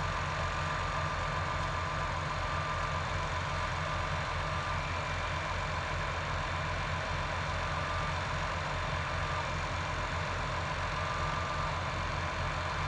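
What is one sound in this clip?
A large diesel engine idles with a steady low throb.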